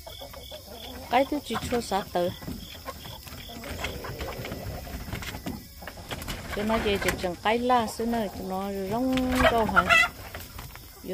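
Hens cluck and squawk close by.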